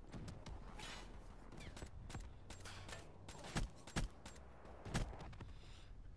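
Gunshots crack in loud, sharp bursts.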